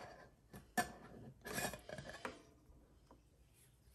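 A metal lid scrapes as it is screwed onto a jar.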